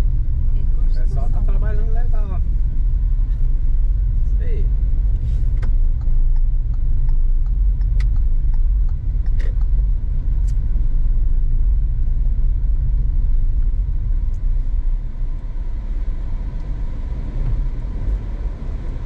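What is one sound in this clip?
Tyres rumble over a cobbled road.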